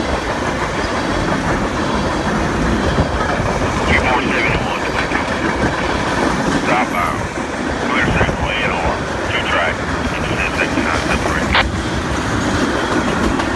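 A freight train of tank cars and boxcars rumbles past on steel rails.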